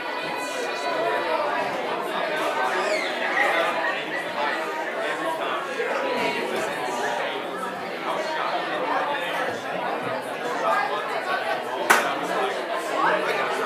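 A crowd of men and women chat at once in a room with echo.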